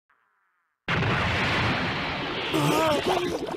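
A loud explosion roars.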